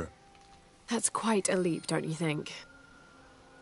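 A young woman answers calmly.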